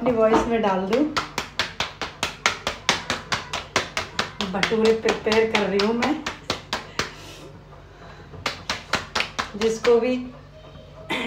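Dough slaps rhythmically between a woman's palms.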